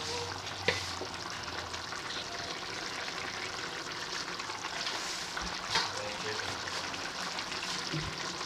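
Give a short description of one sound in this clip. A thick stew bubbles and sizzles steadily in a pan.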